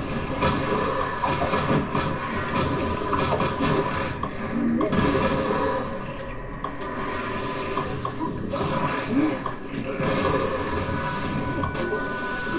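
Punches and hits land in quick bursts.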